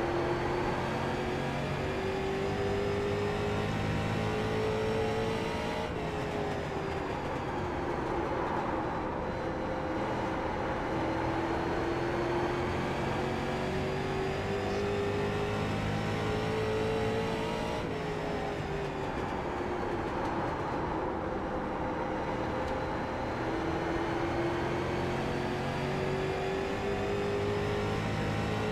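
A race car engine roars steadily, its pitch rising and falling as the car speeds up and slows for the turns.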